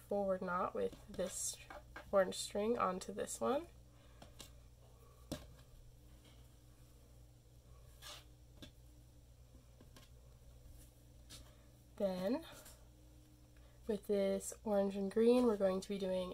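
Thin threads rustle softly as hands pull and braid them.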